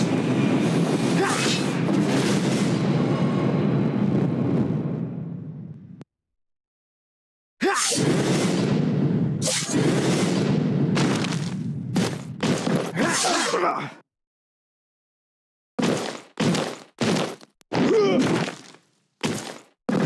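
Swords clash and whoosh in a fight.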